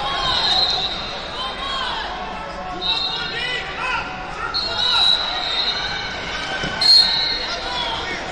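Wrestlers' shoes squeak sharply on a mat.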